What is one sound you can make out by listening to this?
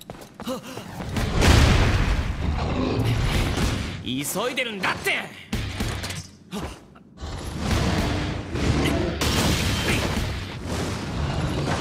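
Heavy blows and crashes of a fight boom loudly.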